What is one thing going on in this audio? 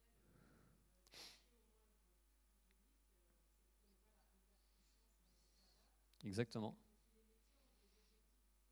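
A man speaks through a microphone in a large hall, in short bursts.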